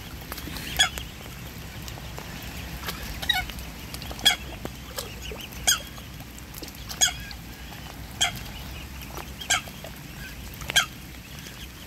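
Cygnets peep in short, high, falling calls at a steady pace.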